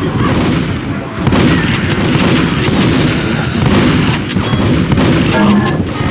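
Zombies snarl and shriek close by.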